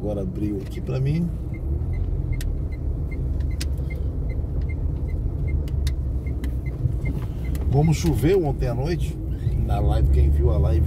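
A car engine hums steadily from inside the car as it drives along a road.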